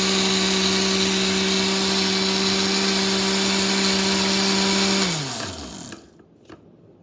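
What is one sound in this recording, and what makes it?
A blender motor whirs loudly, then winds down and stops.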